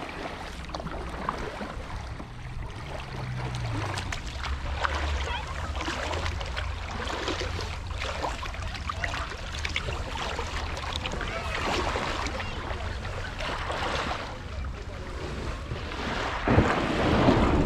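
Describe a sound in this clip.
A paddle splashes and dips in the water.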